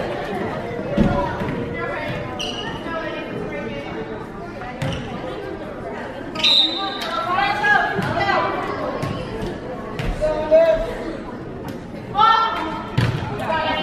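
A volleyball thumps sharply as players hit it.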